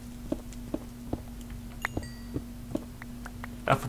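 A pickaxe taps rhythmically on stone blocks.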